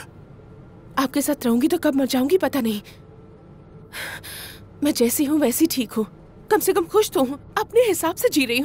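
A young woman speaks close by with feeling.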